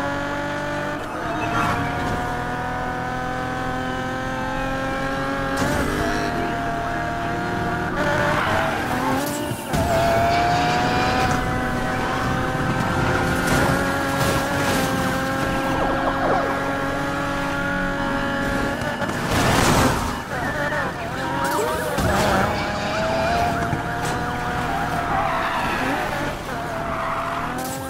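A race car engine roars and revs at high speed.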